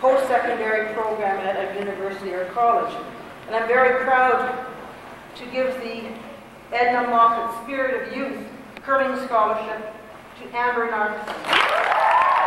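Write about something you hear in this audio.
A woman reads out names through a microphone in a large echoing hall.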